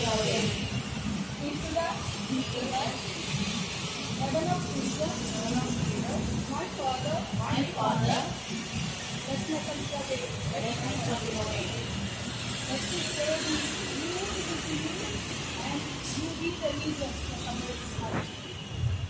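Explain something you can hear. A woman speaks steadily into a microphone, heard over a loudspeaker outdoors.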